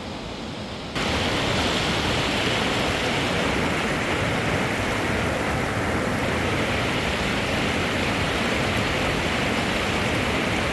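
A shallow stream rushes over rocks.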